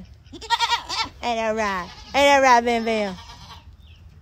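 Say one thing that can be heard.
Sheep bleat loudly close by.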